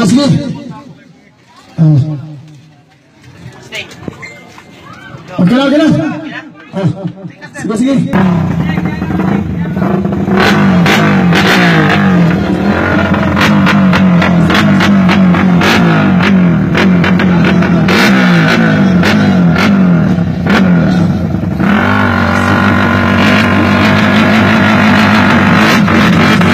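A motorcycle engine revs loudly in short bursts, then roars steadily and rises and falls.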